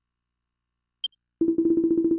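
A quick high chime sounds once.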